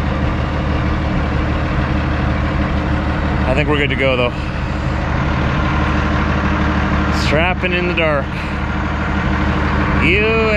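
An engine idles steadily nearby.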